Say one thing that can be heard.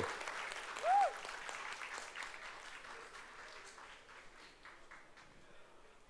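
A crowd in a large hall applauds and cheers, then fades.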